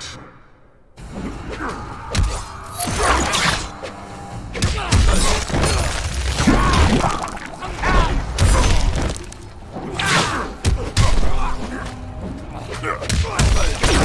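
Heavy punches and kicks land with thuds and smacks.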